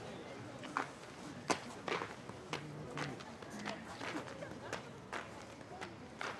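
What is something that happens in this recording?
Footsteps tap slowly on a hard stone floor.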